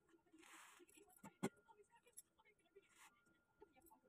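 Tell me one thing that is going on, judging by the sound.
A plastic lid clicks off a blender jar.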